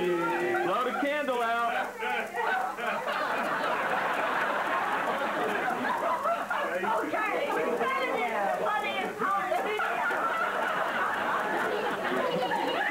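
Small children talk and babble excitedly close by.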